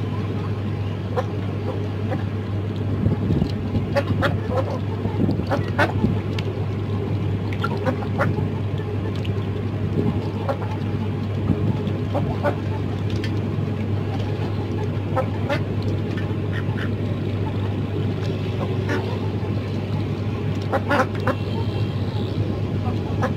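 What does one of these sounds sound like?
Chickens and ducks peck at food on a tarp, with quick soft taps.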